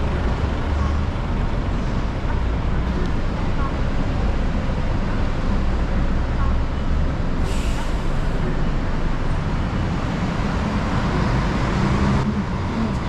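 Traffic rumbles steadily on a busy street outdoors.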